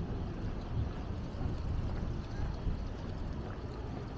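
A pushchair's wheels roll over paving nearby.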